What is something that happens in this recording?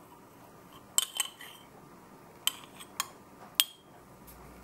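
A metal spoon clinks against a glass jar.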